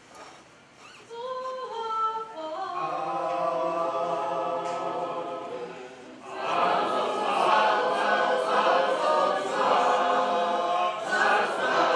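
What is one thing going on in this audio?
A group of people sings together in an echoing room.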